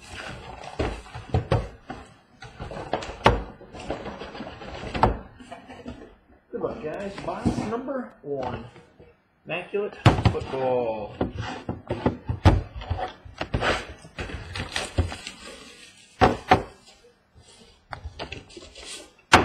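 Boxes knock down onto a wooden table.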